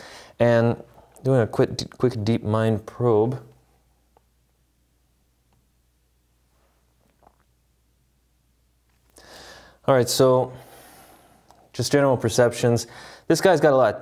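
A young man speaks calmly and clearly into a close microphone.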